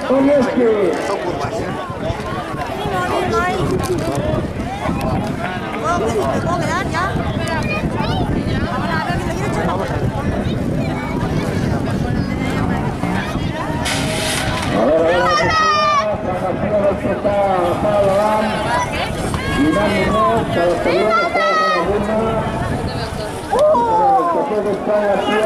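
A crowd of spectators chatters and cheers loudly outdoors.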